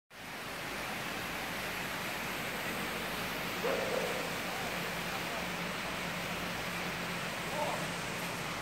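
A river flows with a steady rush.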